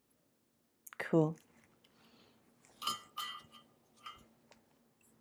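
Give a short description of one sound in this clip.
A young woman speaks calmly and briefly into a nearby microphone.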